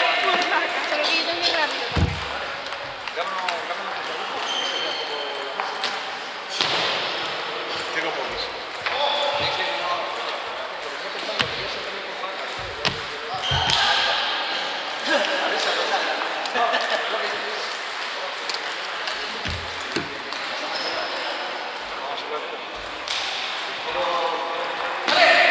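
People chatter in the background of a large echoing hall.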